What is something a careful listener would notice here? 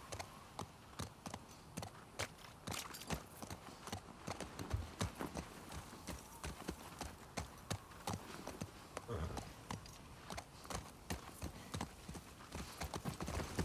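Horse hooves clop steadily at a trot.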